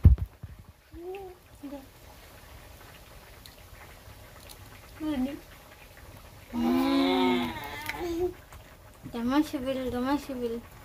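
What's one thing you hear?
A small child babbles and calls out.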